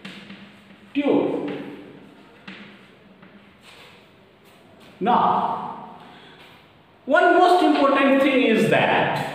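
A middle-aged man speaks in a lecturing voice in a room with some echo.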